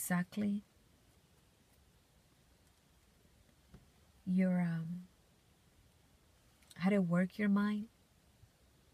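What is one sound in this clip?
A young woman speaks softly and closely in short bursts.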